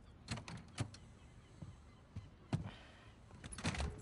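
A door opens and shuts.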